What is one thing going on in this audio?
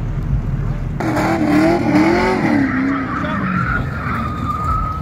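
Car tyres squeal as a car drifts.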